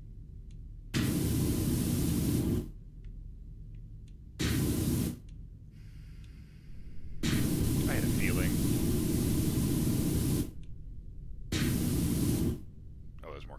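A pressure washer sprays in loud hissing bursts.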